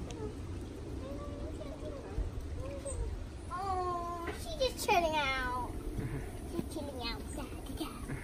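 A young girl talks excitedly and laughs close by.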